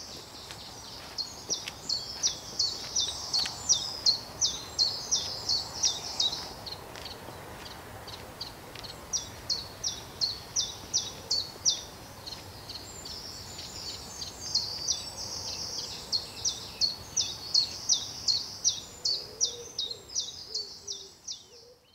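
Footsteps crunch on a gravel path and slowly fade into the distance.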